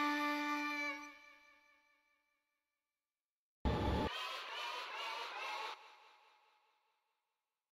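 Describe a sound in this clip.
Electronic game music plays in short bursts.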